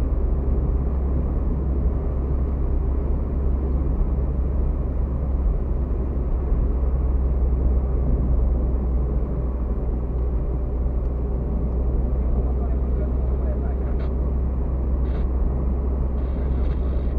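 Tyres rumble steadily over a rough road.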